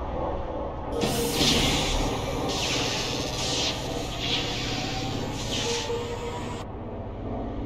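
Electricity crackles and hisses in loud bursts.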